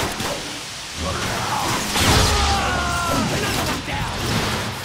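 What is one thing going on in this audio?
An energy weapon fires sharp blasts.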